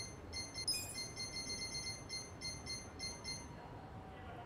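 Short electronic menu blips chime in quick succession.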